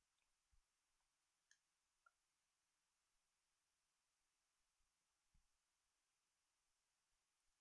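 A woman sips a drink close to a microphone.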